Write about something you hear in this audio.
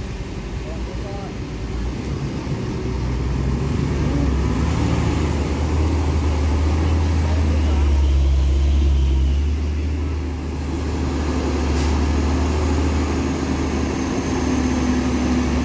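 A pickup truck engine revs as it crawls over a rough dirt road.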